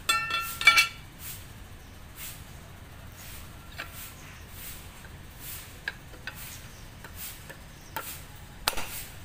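A cloth rubs and swishes over smooth metal in repeated strokes.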